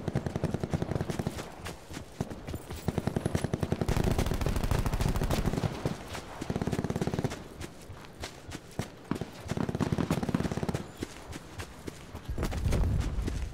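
Footsteps run quickly through tall grass.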